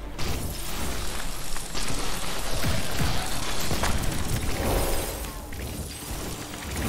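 Energy blasts crackle and boom in a video game.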